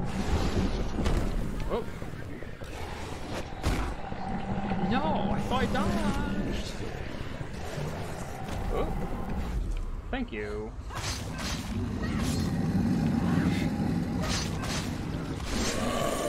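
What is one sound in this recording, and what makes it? A huge beast roars and snarls.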